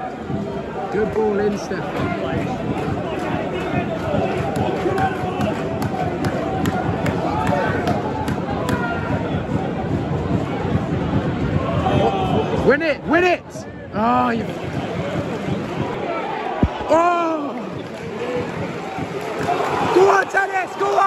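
A large stadium crowd chants and roars outdoors.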